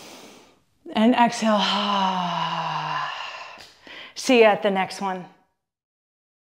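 A young woman speaks cheerfully into a close microphone.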